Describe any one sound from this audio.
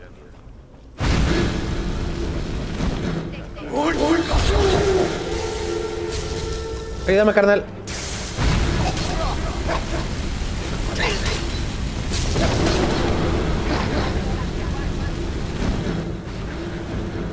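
Fire spells whoosh and roar in bursts.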